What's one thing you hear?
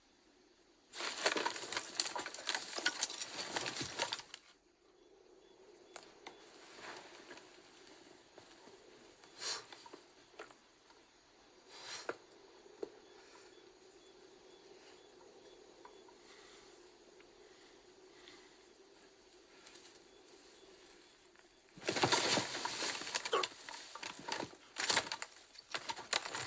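Tall reeds rustle and swish as men push through them.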